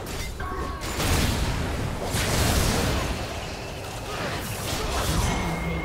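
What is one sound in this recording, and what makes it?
Magic blasts burst and boom.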